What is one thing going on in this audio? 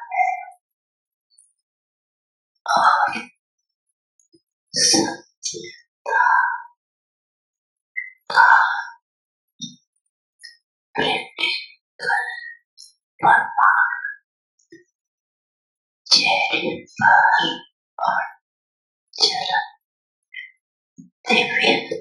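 An elderly woman speaks calmly and slowly, close by, with pauses between phrases.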